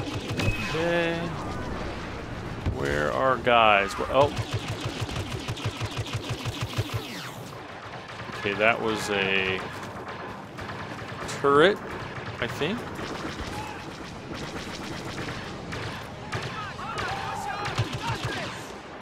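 Laser bolts whine and zip past.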